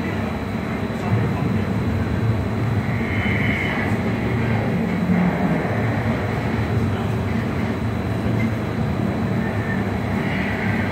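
A powerful fan roars steadily inside a small booth.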